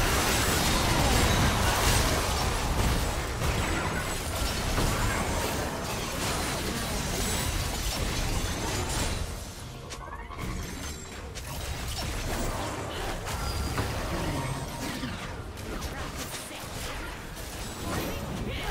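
Spells and weapon hits crackle and clash in a busy game fight.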